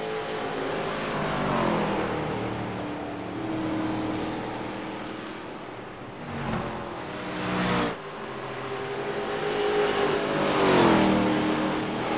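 A race car whooshes past up close.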